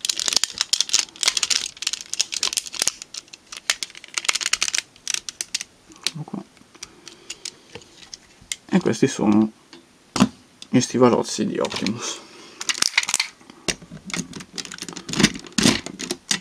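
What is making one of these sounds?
Plastic toy parts click and rattle as hands handle them.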